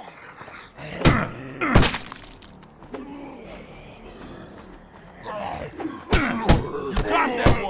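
A blunt weapon strikes a body with heavy thuds.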